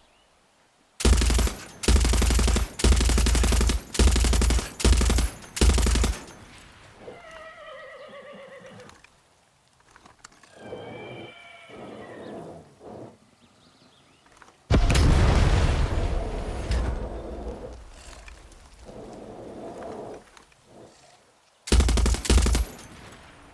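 A mounted machine gun fires in loud, rapid bursts.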